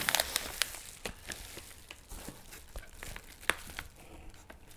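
Bubble wrap crackles softly under hands.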